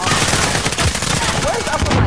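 Pistol shots bang in quick succession.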